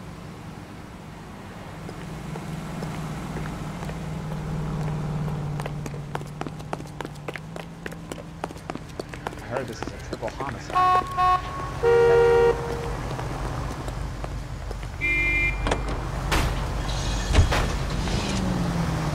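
Traffic hums steadily on a street.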